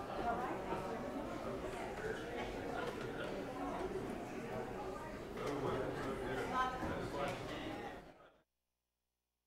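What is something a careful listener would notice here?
A pipe organ plays chords in a reverberant hall.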